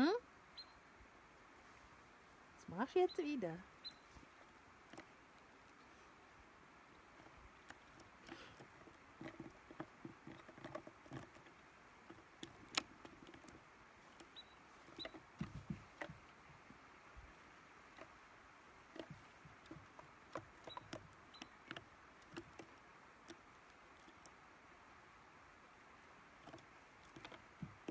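A squirrel scratches and taps on a plastic lid.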